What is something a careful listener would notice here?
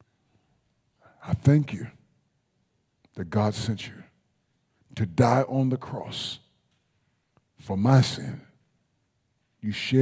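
A man preaches through a microphone in short, emphatic phrases with pauses between them.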